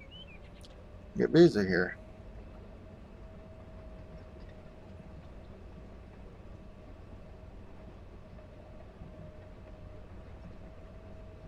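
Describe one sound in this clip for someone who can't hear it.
A heavy machine's engine hums steadily.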